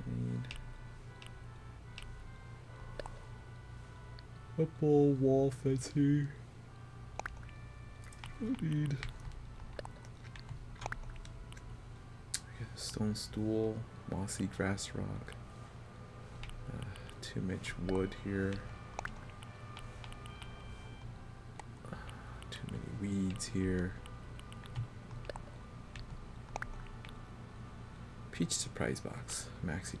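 Soft menu clicks tick as a cursor moves between items.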